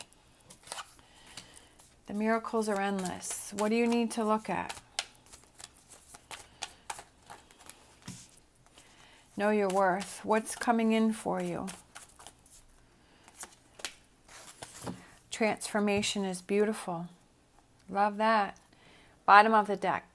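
Playing cards shuffle and riffle in hands.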